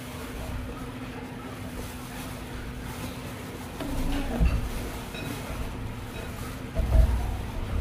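A young woman chews food close by.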